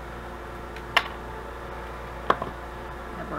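Small pliers click sharply against a metal piece.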